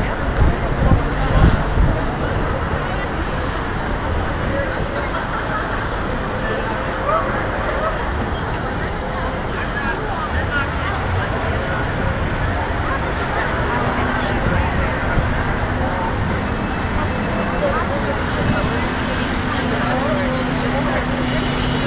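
A large crowd murmurs and chatters outdoors on a busy street.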